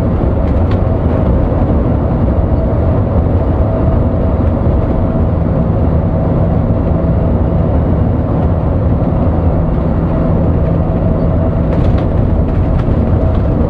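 A bus engine drones steadily as it drives along.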